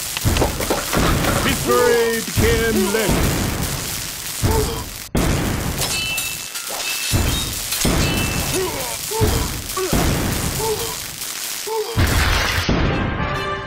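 Explosions boom in a game.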